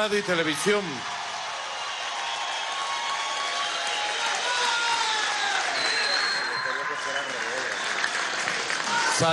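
A large crowd cheers.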